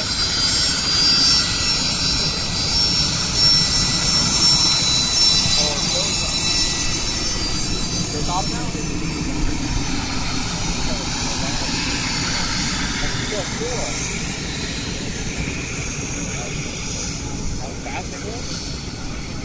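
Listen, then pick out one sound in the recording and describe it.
A business jet taxis past, its turbofan engines whining and then fading as it moves away.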